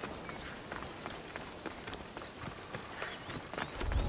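Footsteps crunch through grass.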